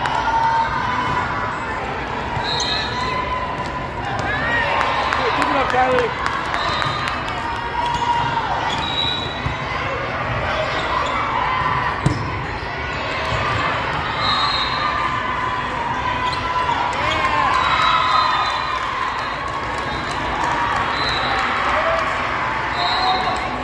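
Young women call out to each other in an echoing hall.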